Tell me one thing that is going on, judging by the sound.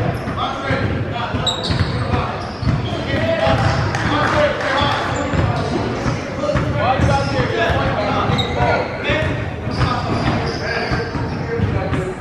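Several young people talk and shout across a large echoing gym.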